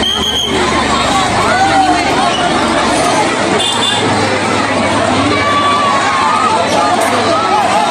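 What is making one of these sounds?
Children shriek and yell with excitement.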